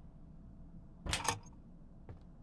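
A metal panel door clanks open.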